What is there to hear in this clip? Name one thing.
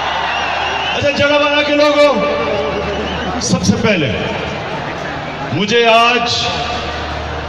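A man calls out loudly through loudspeakers.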